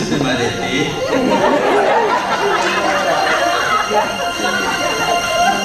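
A young woman sings into a microphone through a loudspeaker.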